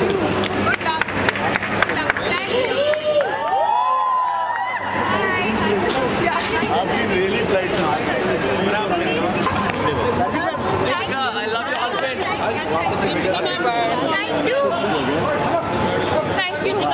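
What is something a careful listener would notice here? A crowd of men shout and call out excitedly close by.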